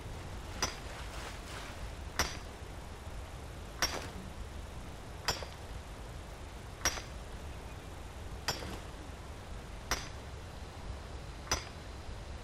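A pickaxe strikes rock with sharp, ringing blows at a steady pace.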